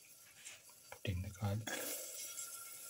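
Garlic cloves drop into a hot pan with a few thuds.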